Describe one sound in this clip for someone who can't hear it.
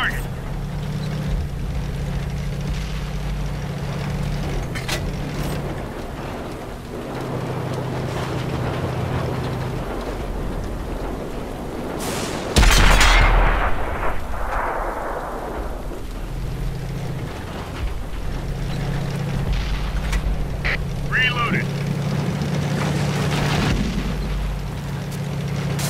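A tank engine rumbles and drones steadily.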